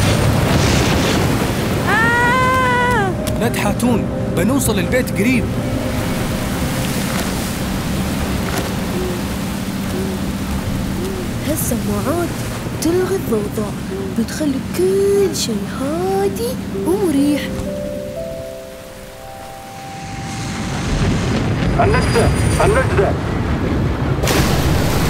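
Strong wind blows across the open sea.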